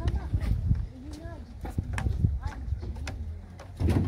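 Small feet tap on metal steps.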